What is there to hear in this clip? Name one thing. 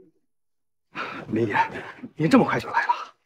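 A man speaks respectfully nearby.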